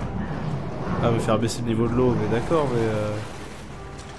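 Water gurgles and sloshes.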